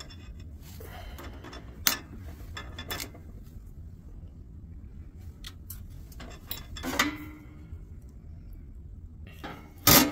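Small metal tools and wires click and clatter.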